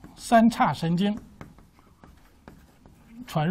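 Chalk taps and scrapes on a blackboard.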